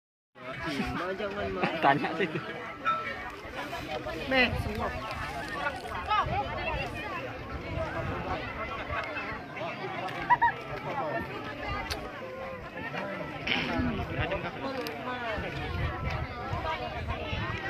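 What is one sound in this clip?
A large crowd of men and women talks and shouts outdoors.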